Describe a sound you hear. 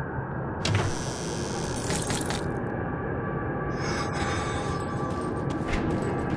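Weapon blows strike in a fight.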